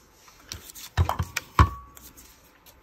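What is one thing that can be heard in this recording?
A paper punch snaps down through card.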